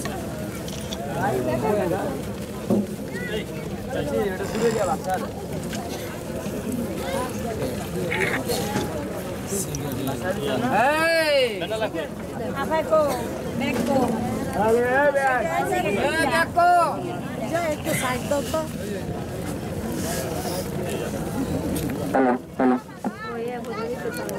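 A crowd of men and women talks and murmurs close by, outdoors.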